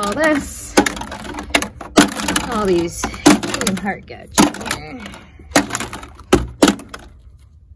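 Hollow plastic balls drop and clatter against each other and a plastic chute.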